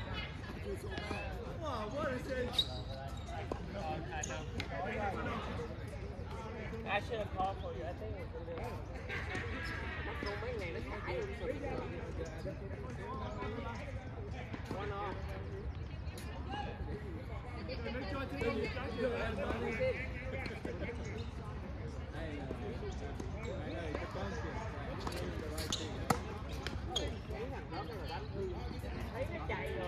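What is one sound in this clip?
Men talk and call out nearby outdoors.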